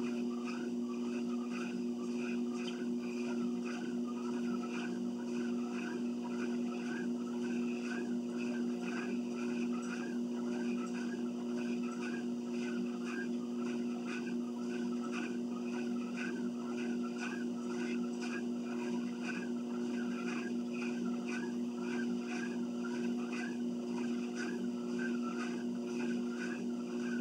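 A treadmill motor hums steadily.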